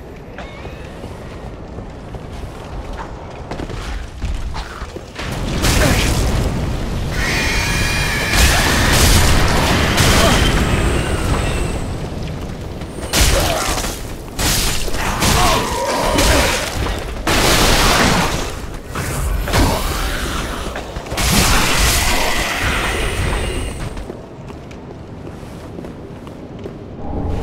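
Footsteps thud on wooden planks and stone.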